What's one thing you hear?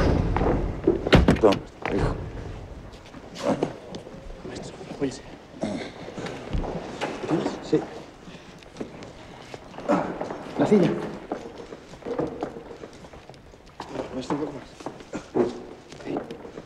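Men talk nearby with excitement.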